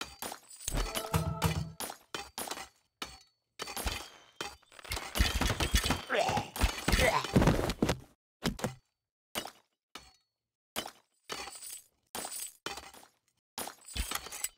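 Swords clash and strike in a video game battle.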